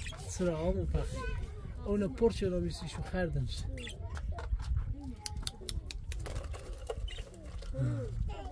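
Budgies chirp and chatter in a cage.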